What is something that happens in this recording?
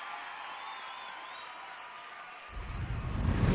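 A rock band plays music.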